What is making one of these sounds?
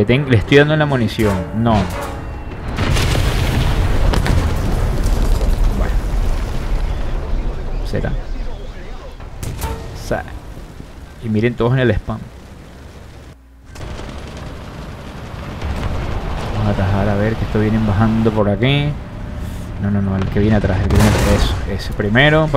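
Shells explode with loud, heavy booms.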